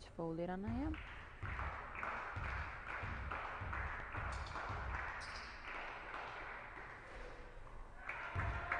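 A basketball bounces repeatedly on a wooden floor.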